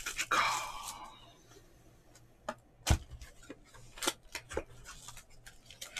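A cardboard box is tapped and handled, with light knocks.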